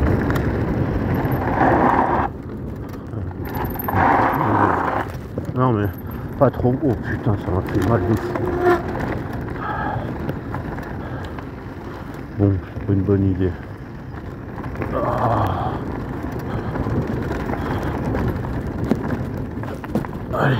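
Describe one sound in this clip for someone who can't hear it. Bicycle tyres crunch and rattle over loose gravel.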